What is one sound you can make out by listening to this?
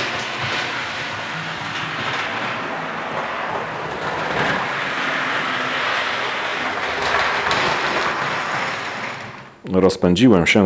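A small model train rumbles and clatters along its track.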